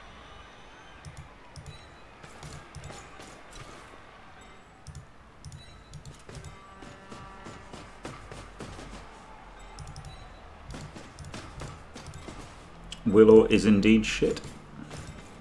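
Soft game clicks and thuds sound now and then.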